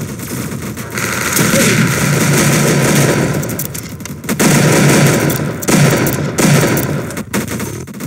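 Loud explosions and gunfire boom in a video game.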